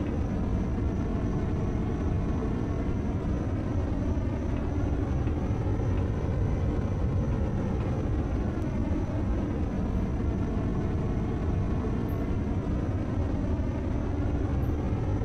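A cutting torch hisses steadily.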